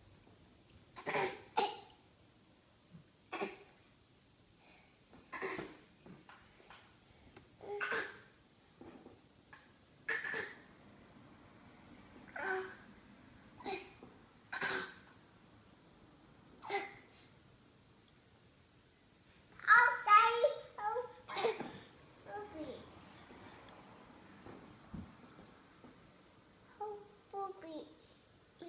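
Two toddler girls babble back and forth in short bursts close by.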